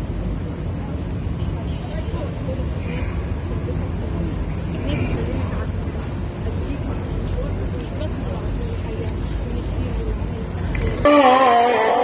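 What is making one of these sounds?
Men talk quietly among a crowd.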